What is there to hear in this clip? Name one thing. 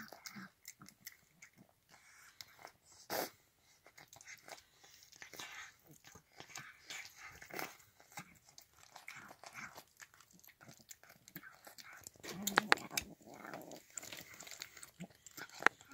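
A metal bowl clinks softly as a cat eats from it.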